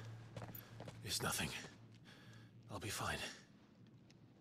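A young man speaks in a low, tired voice.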